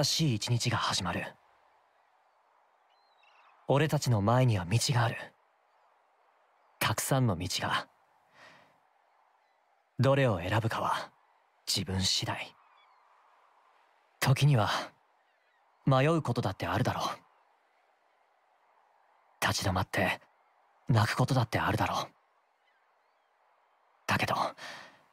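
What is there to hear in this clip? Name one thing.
A young man speaks calmly and slowly, in short phrases with pauses between them.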